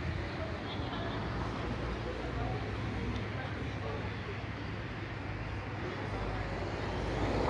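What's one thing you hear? A crowd of people chatters at a distance outdoors.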